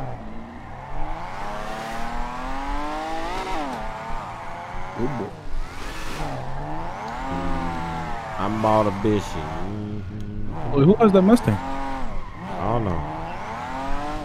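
Car tyres screech as they skid on pavement.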